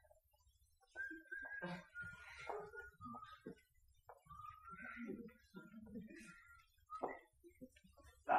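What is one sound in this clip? An accordion plays softly.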